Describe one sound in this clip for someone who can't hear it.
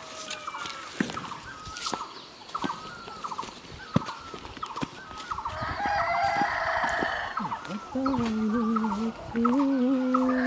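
A walking stick taps on the dirt ground.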